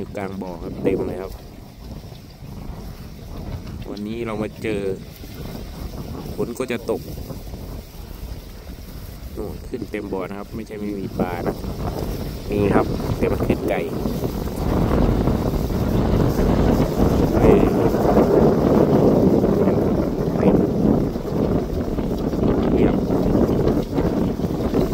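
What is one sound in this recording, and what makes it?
Small waves lap and ripple on the water.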